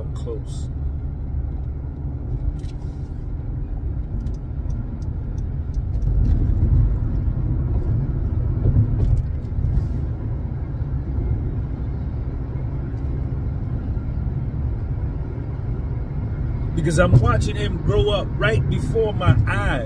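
A car engine and tyres rumble steadily inside the car.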